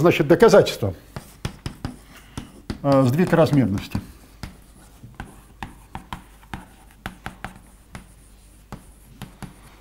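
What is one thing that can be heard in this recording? Chalk taps and scrapes on a board.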